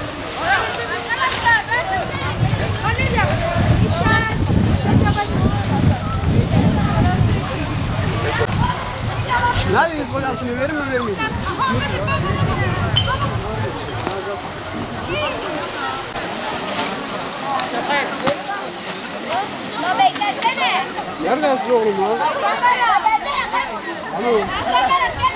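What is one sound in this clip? A crowd of young people chatter outdoors at a distance.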